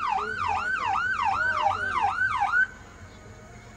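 A siren wails rapidly up and down nearby, then stops abruptly.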